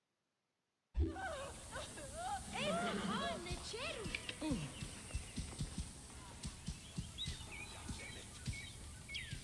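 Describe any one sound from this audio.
A horse gallops with heavy hooves thudding on a dirt road.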